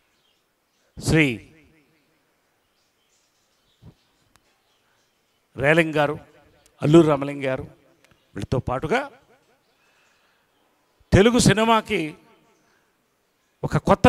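A middle-aged man speaks into a microphone in short phrases with long pauses, heard through a loudspeaker.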